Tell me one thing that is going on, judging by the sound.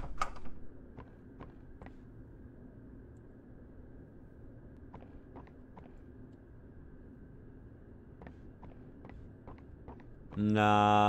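Footsteps thud on a wooden floor at a steady pace.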